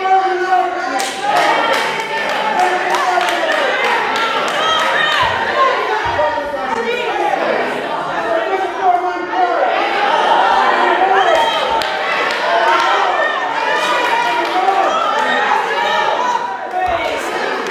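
People in a congregation clap their hands.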